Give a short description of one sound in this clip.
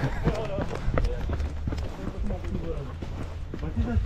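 Men talk with each other at a distance outdoors.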